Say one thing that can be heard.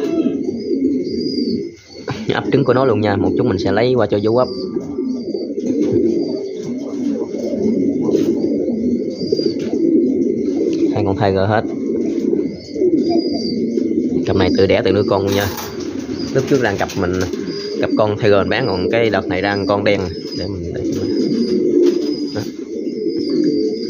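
Pigeons coo in low, rolling tones.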